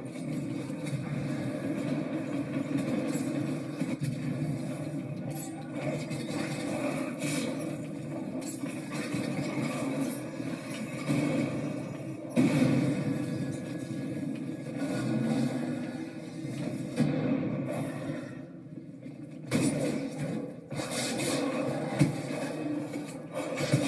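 Video game sound effects and music play from a television loudspeaker.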